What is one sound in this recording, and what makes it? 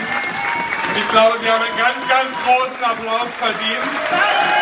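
A large crowd chants in rhythm in a big echoing tent.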